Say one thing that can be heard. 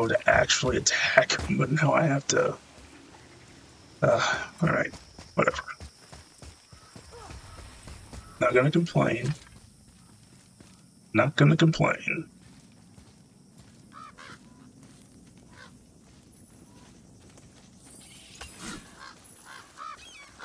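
Footsteps crunch through grass and undergrowth.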